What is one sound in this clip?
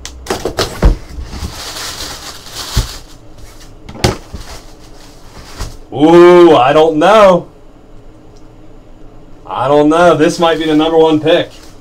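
Paper crinkles and rustles as hands pull it aside.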